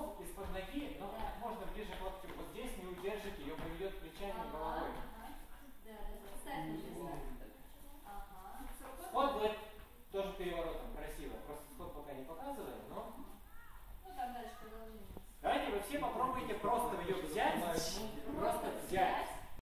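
A woman explains calmly to a group, heard up close in a large echoing room.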